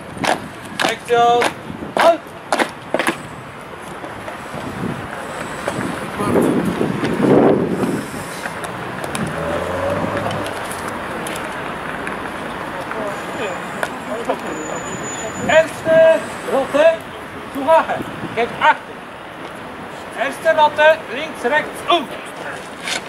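A man shouts commands loudly outdoors.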